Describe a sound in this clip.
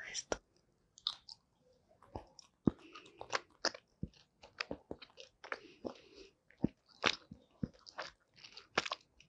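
A woman chews a soft gummy candy with wet, sticky smacking sounds close to a microphone.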